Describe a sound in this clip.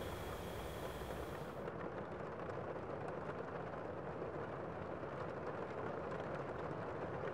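Small cardboard boxes tap and rustle in hands.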